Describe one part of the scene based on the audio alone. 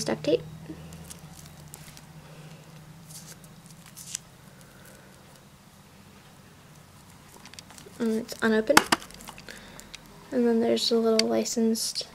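A roll of tape is turned over in the hands, with soft rustling.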